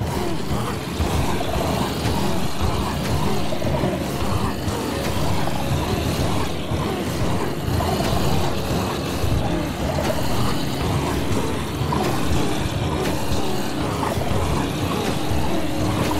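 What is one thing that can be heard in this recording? Heavy blows thud repeatedly against a crowd of zombies.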